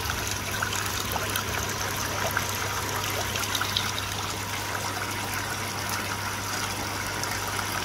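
Water bubbles and trickles steadily nearby.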